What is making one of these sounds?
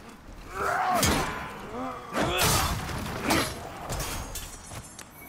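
A sword swishes and strikes with sharp impacts.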